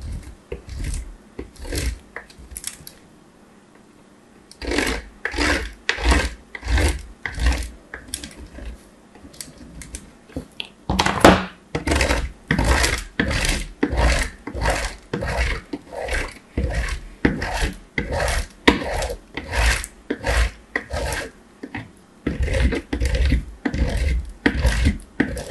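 Soap scrapes against a metal grater in quick rhythmic strokes, close up.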